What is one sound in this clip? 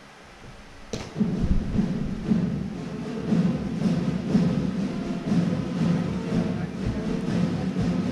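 Music plays through loudspeakers with a steady beat.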